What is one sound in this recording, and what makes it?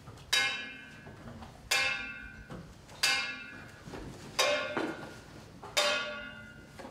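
A metal instrument is struck at a slow, even pace, and each stroke rings out and fades.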